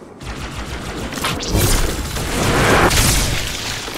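An energy sword swings with a loud buzzing slash.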